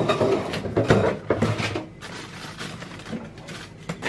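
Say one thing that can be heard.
A plastic tub is picked up from a table with a light knock.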